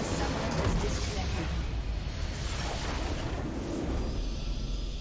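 A loud fiery explosion crashes and rumbles.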